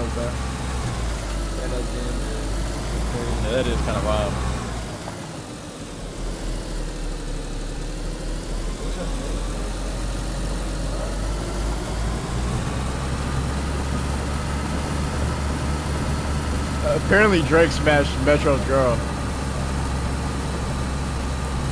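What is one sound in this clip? A car engine hums low and steady as the car drives over rough grass.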